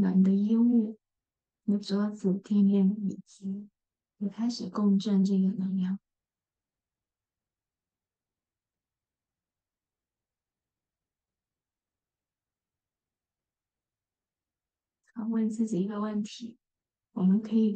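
A young woman speaks calmly and close by, with a long silent pause.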